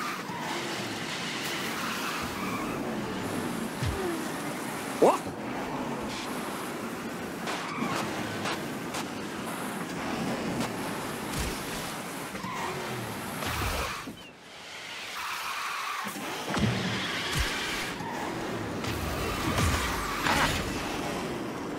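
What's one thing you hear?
A racing kart's engine roars steadily at high speed.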